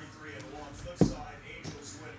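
A plastic card case taps down on a table.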